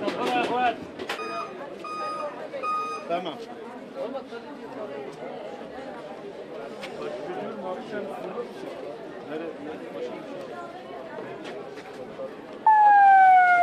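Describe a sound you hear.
A crowd of men murmurs and talks quietly outdoors.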